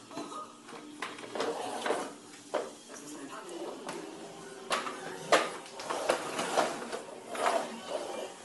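A plastic toy clatters and knocks.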